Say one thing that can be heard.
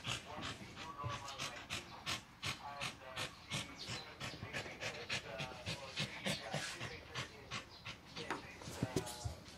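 A dog pants rapidly close by.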